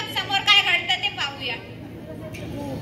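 A young woman speaks through a microphone and loudspeakers in a large, echoing space.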